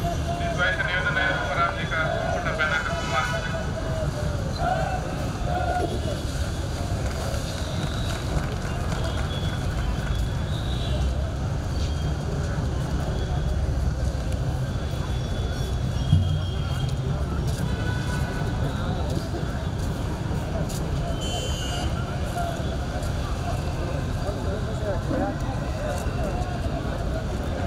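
A crowd murmurs and talks outdoors.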